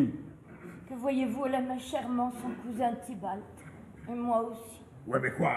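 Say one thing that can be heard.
A woman speaks with feeling.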